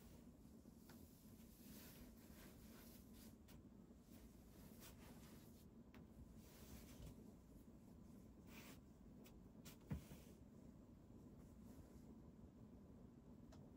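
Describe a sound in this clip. A cat rubs its head softly against a blanket, rustling faintly.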